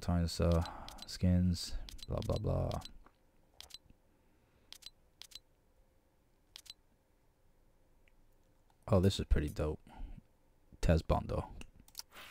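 Soft menu clicks tick as a selection moves from item to item.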